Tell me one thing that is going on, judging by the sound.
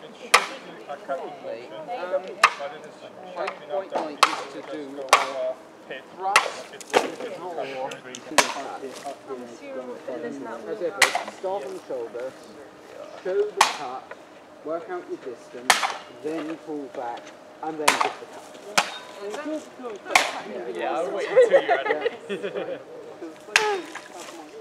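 A blade strikes a target with sharp, repeated whacks.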